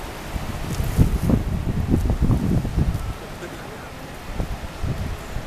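Waves crash and surge against the shore.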